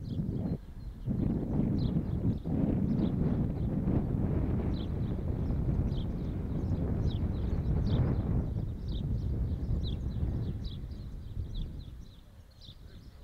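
Wind buffets loudly outdoors, then eases.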